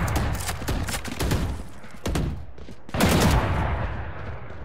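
A rifle fires sharp bursts of shots in a video game.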